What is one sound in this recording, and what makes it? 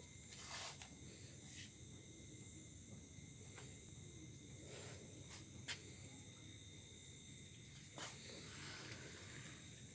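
Electric sparks crackle and pop sharply under water.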